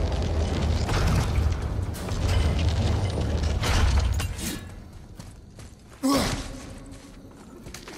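Flames burst with a loud roaring whoosh.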